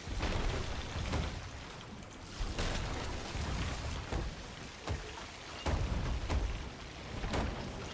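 Water splashes as it is thrown from a bucket.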